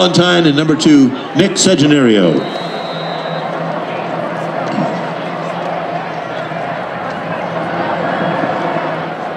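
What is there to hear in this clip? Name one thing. A crowd murmurs and chatters in an open-air stadium.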